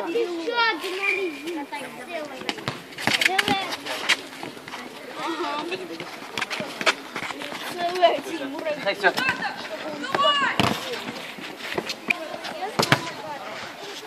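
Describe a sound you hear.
A football is kicked and bounces on a paved court.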